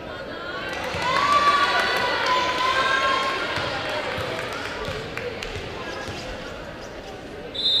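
A volleyball is struck and bounces on the hard floor.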